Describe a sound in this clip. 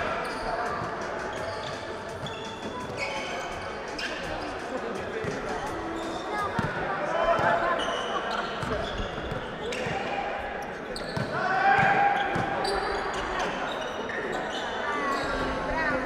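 A crowd murmurs and cheers in the background.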